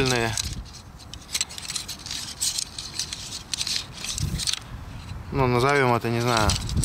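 Light metal poles clink and rattle as they are handled.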